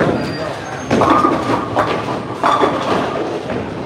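Bowling pins crash and scatter.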